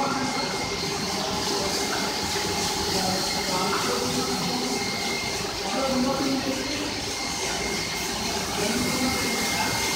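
Soapy water churns and splashes in a washing channel.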